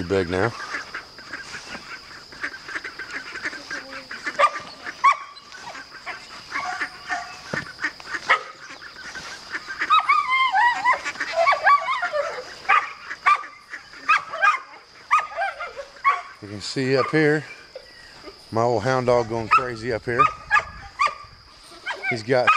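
Ducks quack and chatter close by.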